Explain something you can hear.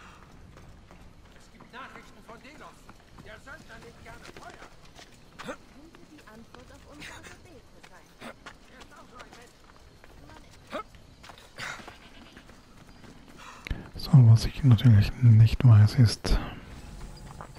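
Footsteps crunch on a stony path.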